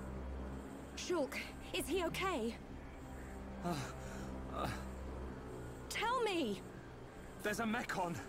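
A young woman speaks with urgency and worry.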